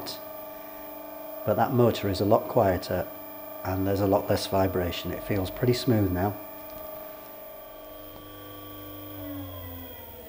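An electric motor hums steadily.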